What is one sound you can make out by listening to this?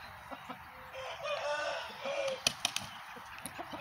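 A rooster flaps its wings.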